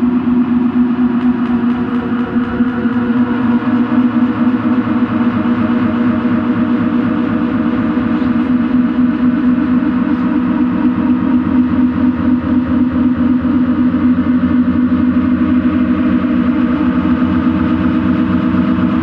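Dense electronic music drones and pulses from an electronic instrument played live.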